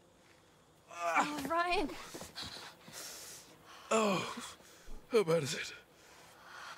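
A young man groans in pain and speaks weakly.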